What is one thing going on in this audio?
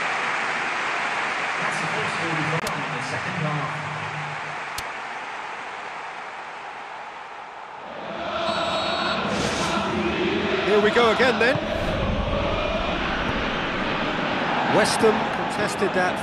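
A large crowd cheers and roars steadily in a stadium.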